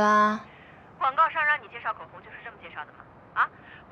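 Another young woman asks a question nearby.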